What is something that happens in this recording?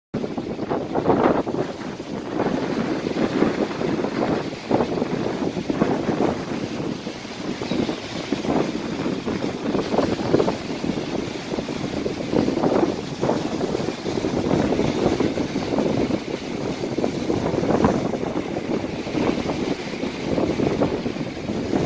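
Waves break and wash up on a shore.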